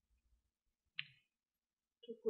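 A mahjong tile clicks down on a table.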